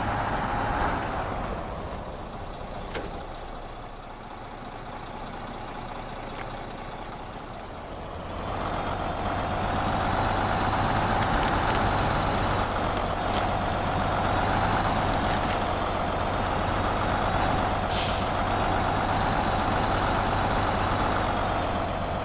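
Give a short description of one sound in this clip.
A heavy truck engine rumbles outside as the truck crawls over rocks and snow.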